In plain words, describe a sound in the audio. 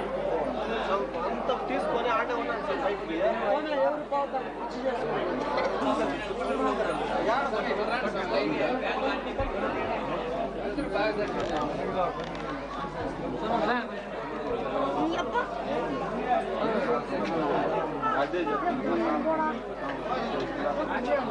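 A crowd of men talk and chant loudly all around.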